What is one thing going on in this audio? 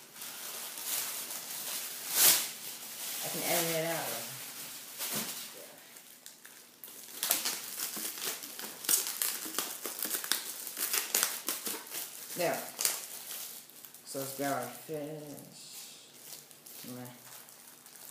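Plastic crinkles and rustles as it is handled.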